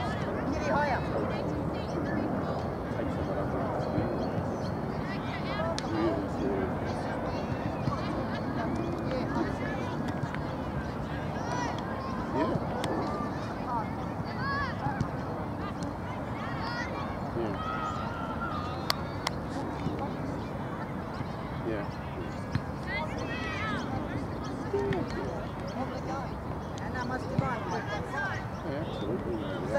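Young girls call out to each other across an outdoor field.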